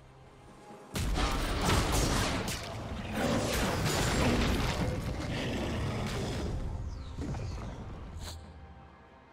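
A loud magical whoosh rumbles and swells, then fades away.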